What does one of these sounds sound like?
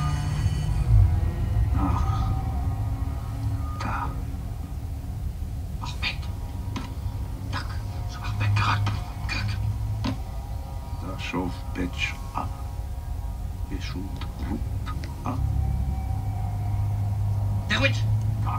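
A television plays a film soundtrack with a deep, rumbling score.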